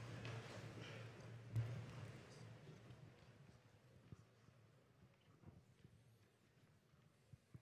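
A crowd of people murmurs and chatters in a large echoing hall, gradually quieting down.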